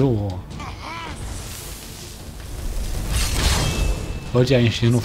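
A dragon breathes fire with a loud roaring whoosh.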